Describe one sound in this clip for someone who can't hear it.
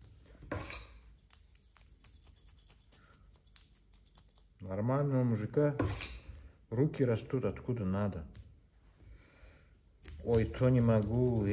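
A knife scrapes scales off a fish with quick rasping strokes.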